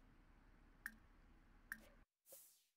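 Soft game interface clicks sound twice.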